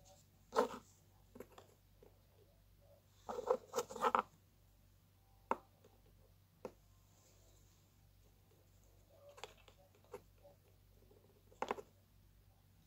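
Plastic tubes click and tap against a hard surface as they are handled.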